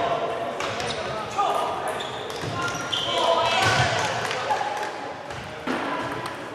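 Several people talk and call out in the background.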